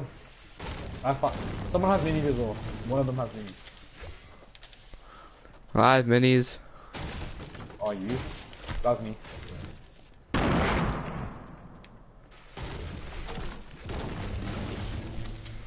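A pickaxe strikes wood with repeated dull thuds.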